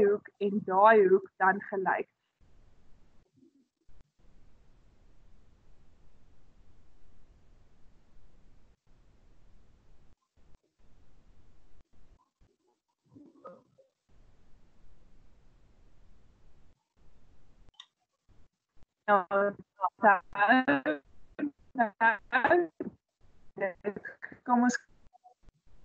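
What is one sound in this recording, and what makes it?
A woman speaks calmly through an online call, pausing now and then.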